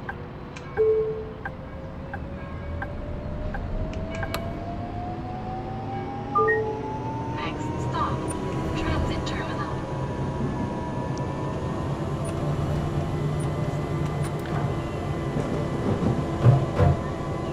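A tram's electric motor hums and whines, rising in pitch as it speeds up.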